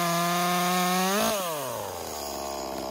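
A chainsaw engine revs up briefly and then winds down to a low idle.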